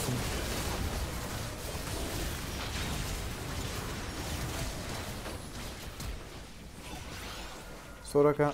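Game spell effects crackle and whoosh during a fight.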